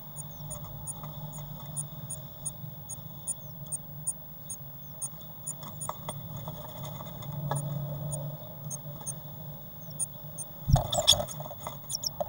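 A blue tit shuffles and rustles in dry nest grass inside a wooden nest box.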